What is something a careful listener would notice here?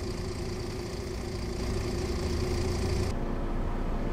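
A bus engine rumbles steadily from outside.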